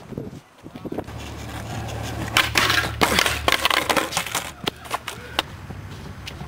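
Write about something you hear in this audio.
Skateboard wheels roll with a low rumble over asphalt.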